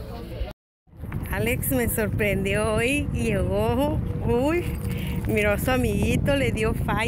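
A woman talks with animation close to the microphone, outdoors.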